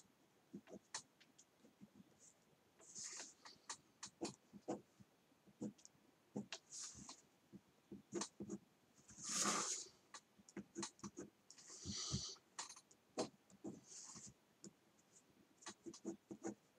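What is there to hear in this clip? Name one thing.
A pen scratches and scrapes across paper.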